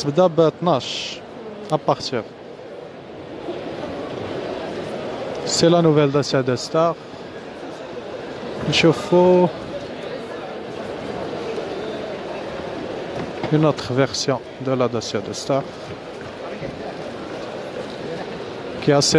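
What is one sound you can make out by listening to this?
A crowd murmurs steadily in a large echoing hall.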